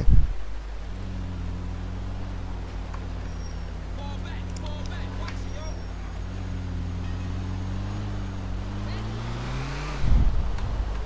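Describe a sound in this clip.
A van engine hums steadily as it drives.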